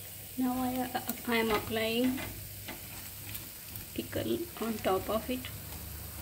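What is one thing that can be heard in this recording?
A spatula scrapes across a pan.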